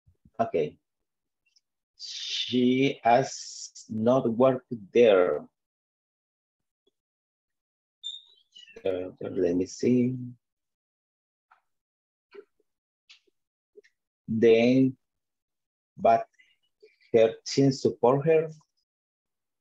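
A man speaks calmly over an online call.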